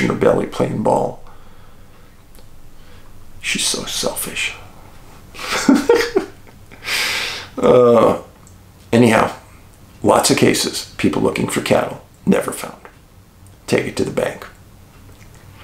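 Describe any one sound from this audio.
A middle-aged man talks calmly and close by, with pauses.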